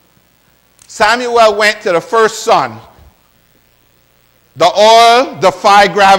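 A man preaches loudly and with animation through a microphone.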